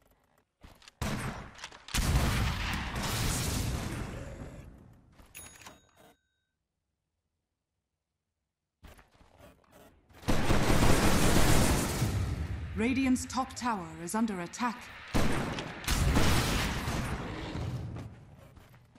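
Game spells crackle and burst in loud bursts.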